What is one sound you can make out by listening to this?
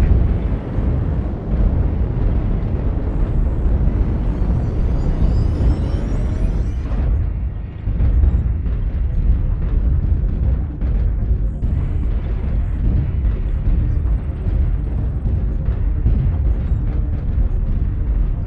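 Heavy mechanical footsteps thud in a slow rhythm.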